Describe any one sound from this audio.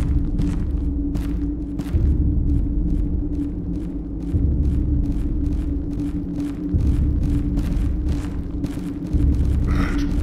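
Footsteps thud steadily on a stone floor.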